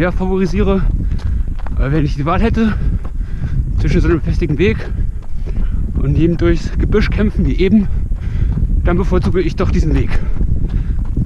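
A young man talks breathlessly and close up while running.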